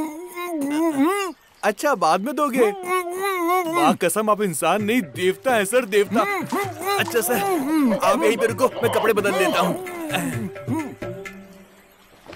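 A man talks loudly and with animation close by.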